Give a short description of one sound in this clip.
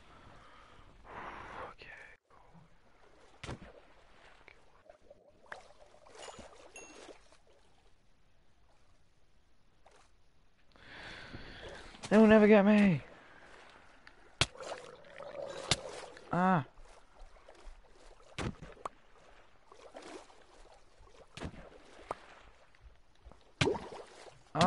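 Water swishes and bubbles softly around a swimmer.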